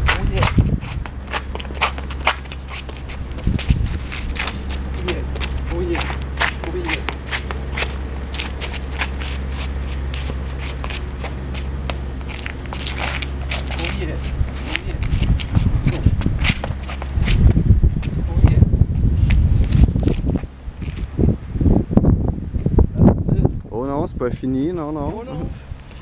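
Shoes scuff and tap on concrete.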